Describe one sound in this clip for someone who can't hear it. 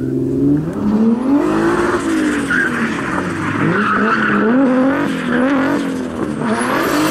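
Car tyres screech on tarmac.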